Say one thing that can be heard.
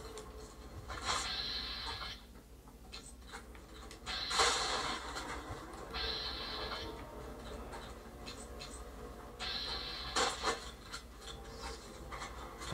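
Gunshots and explosions from a video game play through a television speaker.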